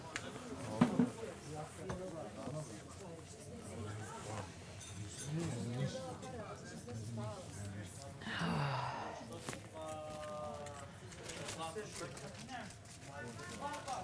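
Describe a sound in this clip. A young woman talks quietly nearby.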